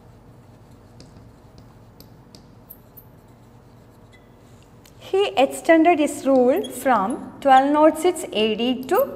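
A marker squeaks and taps on a glass board.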